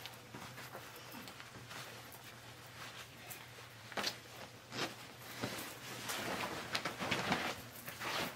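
Denim clothing rustles as a young woman takes off a jacket.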